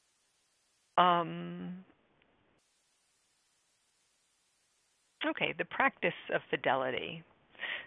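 A woman speaks calmly through an online call microphone.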